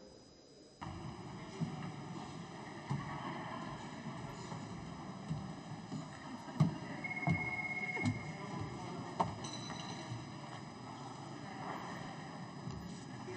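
A large crowd murmurs and shuffles in a big echoing hall.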